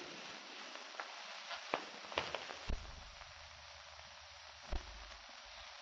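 Footsteps tap slowly on stone steps.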